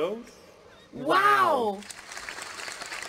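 Children exclaim together in amazement.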